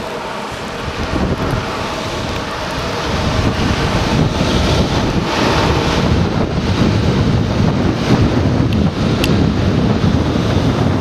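Wind blows hard across a microphone, outdoors.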